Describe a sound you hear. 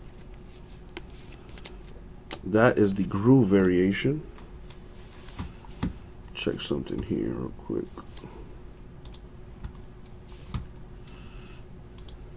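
Trading cards rustle and flick as they are handled.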